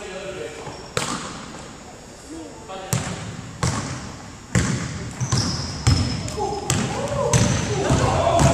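A basketball bounces and thuds on a wooden floor in a large echoing gym.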